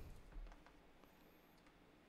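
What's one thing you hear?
A plug slides into a socket with a click.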